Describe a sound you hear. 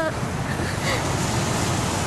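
A woman speaks tensely, close by.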